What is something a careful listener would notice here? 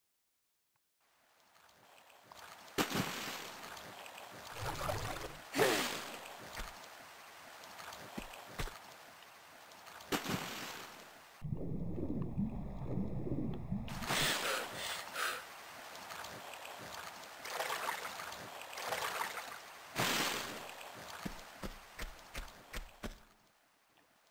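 Water splashes and sloshes as someone wades and swims.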